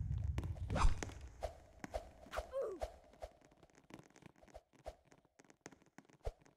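Footsteps tap quickly on hard stairs.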